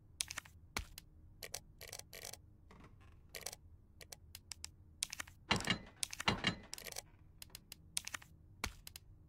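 Short game menu clicks and blips sound in quick succession.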